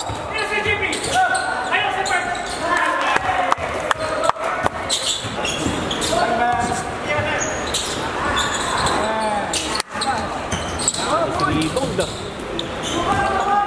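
Basketball sneakers squeak on a court in a large echoing hall.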